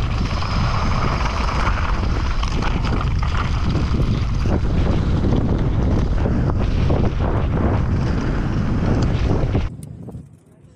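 Wind rushes hard past the rider.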